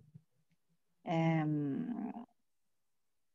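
A man answers briefly over an online call, his voice drawn out.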